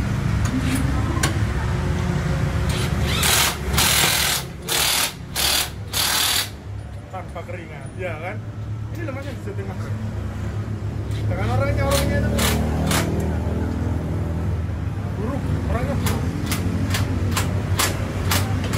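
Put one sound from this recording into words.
A tyre changer machine hums and whirs as it turns a wheel.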